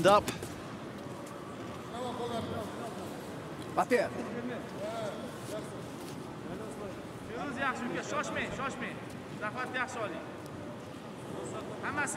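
Judo fighters scuffle and thud on a mat.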